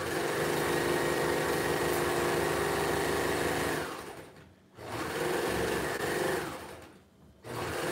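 A sewing machine runs fast, whirring and stopping in bursts.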